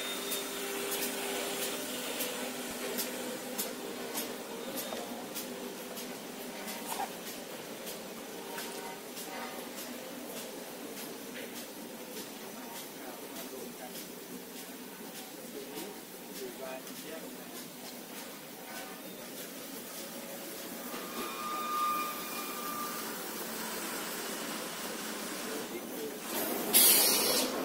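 Factory machines hum and clatter steadily in a large hall.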